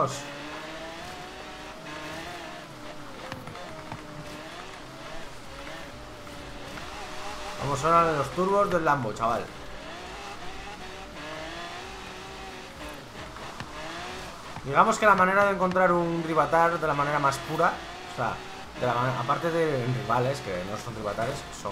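A car engine drones and revs up and down.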